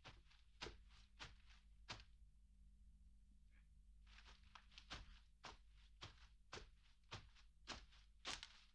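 Tall grass rustles in the breeze.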